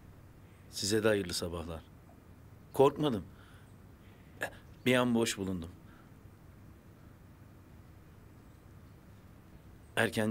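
A man speaks calmly and softly, close by, in short phrases.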